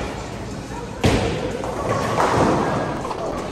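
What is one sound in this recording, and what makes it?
Bowling pins crash and clatter as the ball strikes them.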